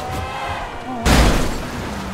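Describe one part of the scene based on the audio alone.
A car crashes into another car with a loud bang.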